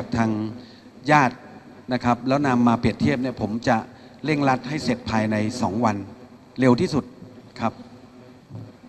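A middle-aged man speaks firmly into a microphone, heard through a loudspeaker.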